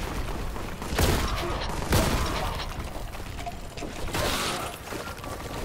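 Bodies burst with wet, splattering gore.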